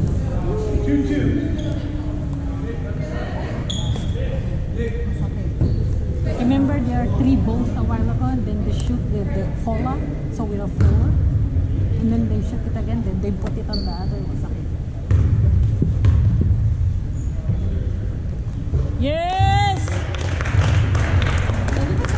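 A crowd of people talks and calls out in a large echoing hall.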